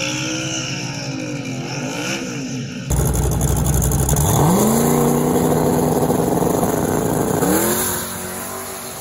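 Tyres squeal on the track during a burnout.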